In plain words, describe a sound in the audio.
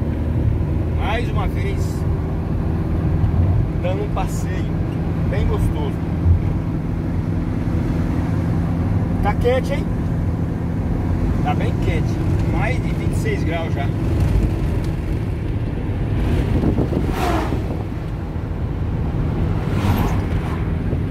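A man talks casually nearby inside a car.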